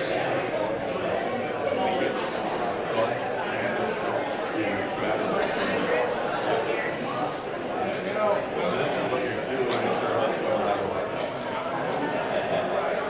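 A seated crowd of people murmurs and chats in a large echoing hall.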